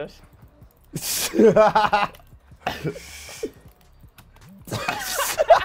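A man laughs loudly through a microphone.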